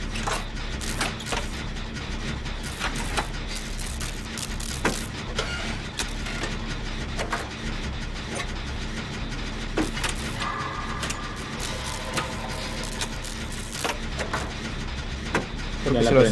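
Metal parts of an engine clank and click while being repaired.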